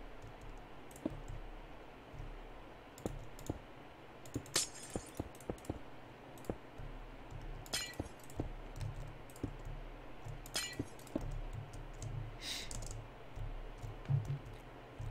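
Blocks thud softly as they are placed one after another.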